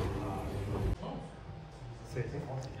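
A man asks a question calmly nearby.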